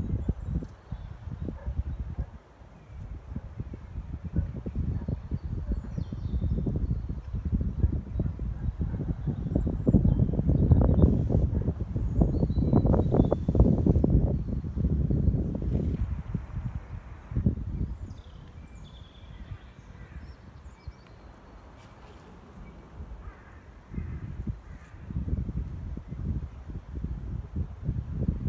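Wind gusts outdoors and buffets the microphone with a low rumble.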